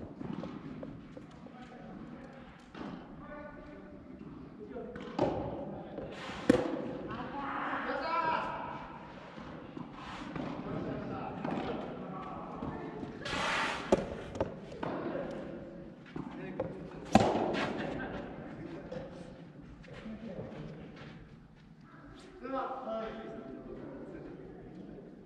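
Young men talk across the court.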